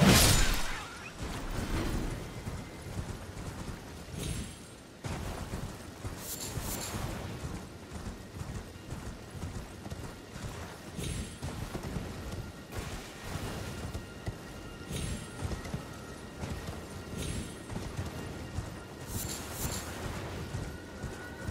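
Footsteps run quickly through grass and over rock.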